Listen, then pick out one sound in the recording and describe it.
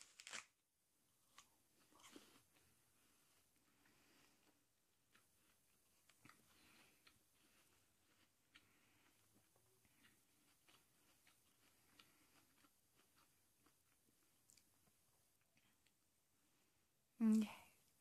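A young woman chews an apple with wet crunching sounds.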